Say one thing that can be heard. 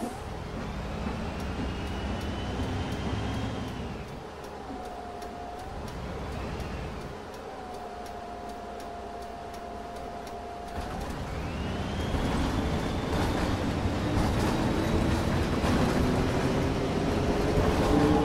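A bus engine hums and whines as the bus drives, slowing and then speeding up again.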